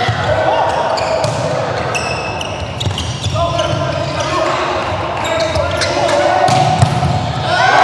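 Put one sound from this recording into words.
A volleyball is struck hard with sharp slaps in an echoing hall.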